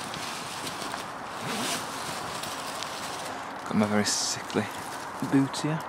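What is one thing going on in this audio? A fabric cover rustles as it is pulled open.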